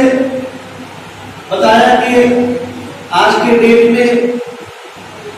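A man speaks loudly and forcefully through a microphone in an echoing hall.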